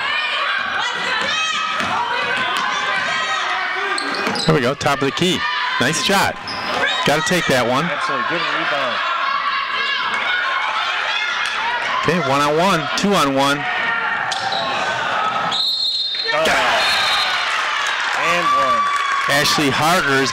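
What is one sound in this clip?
A crowd of spectators cheers and chatters in an echoing gym.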